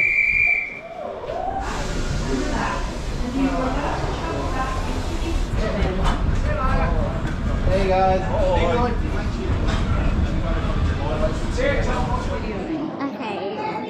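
A train rumbles slowly past.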